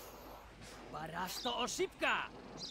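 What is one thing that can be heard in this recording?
A man speaks gruffly.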